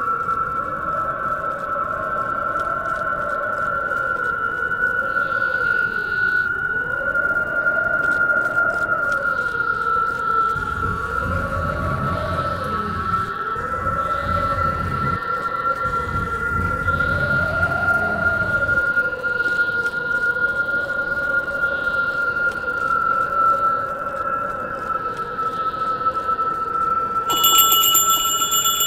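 Eerie droning music plays steadily.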